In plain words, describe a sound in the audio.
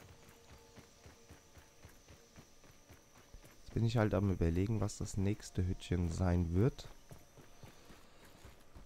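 Soft footsteps patter steadily on dirt.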